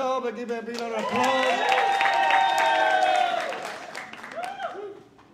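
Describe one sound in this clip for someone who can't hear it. A crowd of men and women cheers and whoops loudly.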